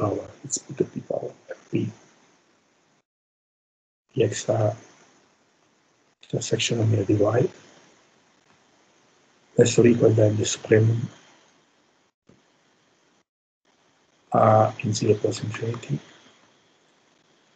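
A man speaks calmly in short bursts with pauses, heard through an online call.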